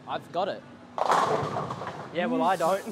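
Bowling pins crash loudly.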